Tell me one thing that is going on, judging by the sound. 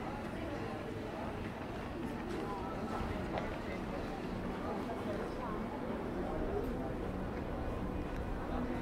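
Distant voices of people murmur in an open square.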